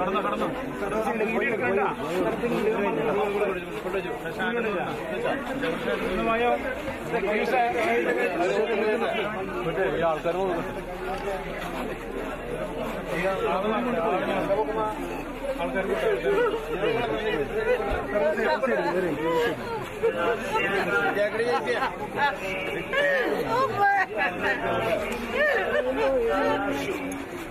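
A crowd of men and women sings together nearby.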